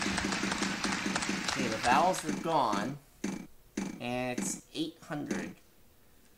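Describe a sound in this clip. A game wheel spins with rapid ticking clicks.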